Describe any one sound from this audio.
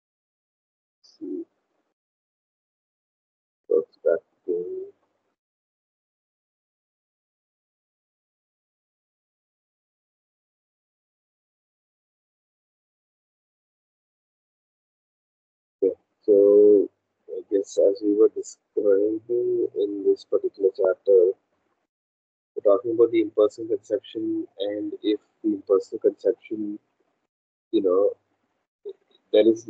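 A man reads aloud steadily over an online call.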